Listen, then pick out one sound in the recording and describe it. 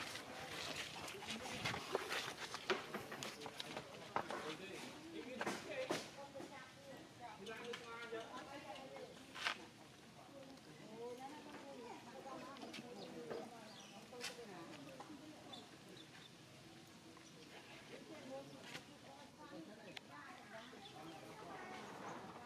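A baby monkey squeals and whimpers close by.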